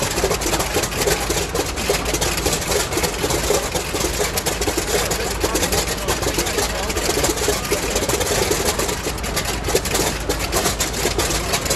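A piston aircraft engine idles loudly with a rough, sputtering rumble.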